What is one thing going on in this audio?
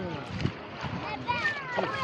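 Water splashes as a young man flicks it with his hand.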